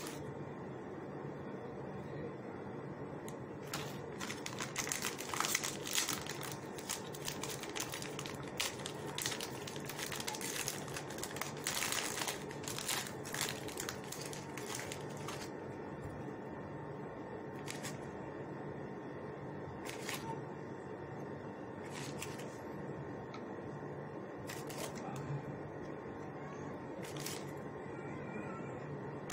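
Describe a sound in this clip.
Biscuits are pressed softly into a glass dish.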